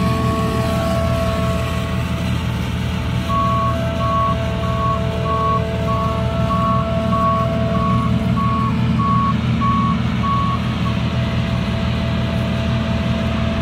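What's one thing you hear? A combine harvester's engine drones loudly and steadily close by.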